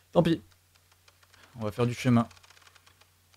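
A young man speaks briefly and with animation, close to a microphone.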